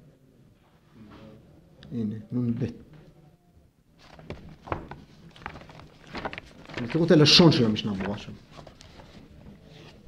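An elderly man speaks into a microphone, reading out calmly.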